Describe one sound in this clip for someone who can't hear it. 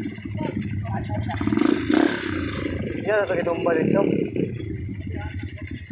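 A dirt bike engine revs as it rides past nearby.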